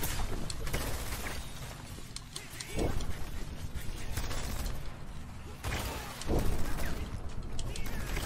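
Video game blasts and explosions boom repeatedly.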